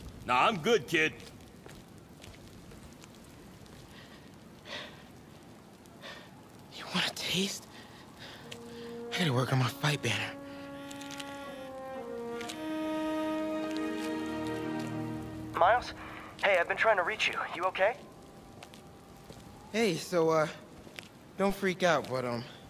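A young man speaks casually up close.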